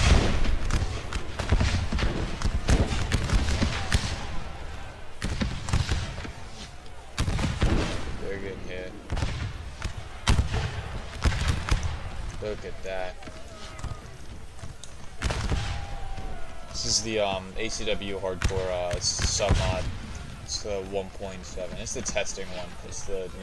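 Rifles fire in ragged volleys, with sharp cracks and booming echoes.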